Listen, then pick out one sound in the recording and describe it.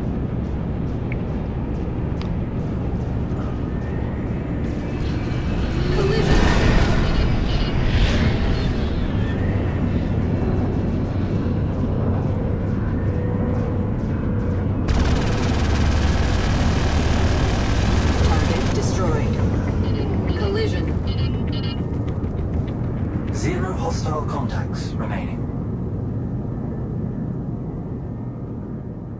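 A spacecraft engine hums with a low, steady rumble.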